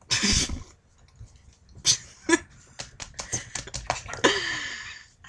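Young people laugh close to a microphone.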